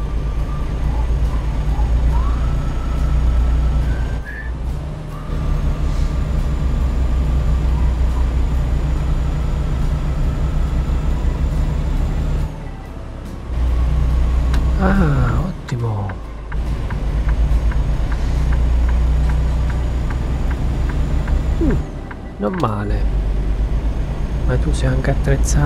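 A truck engine drones steadily as it drives along a road.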